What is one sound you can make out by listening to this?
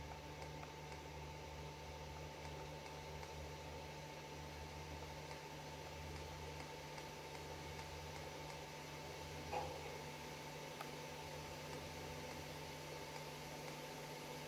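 A soft menu click sounds as selections change.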